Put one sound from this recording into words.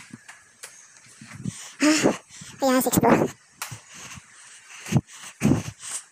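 Footsteps fall on a hard floor.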